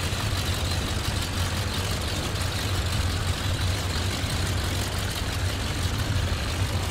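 A propeller plane's engine idles with a steady, low drone.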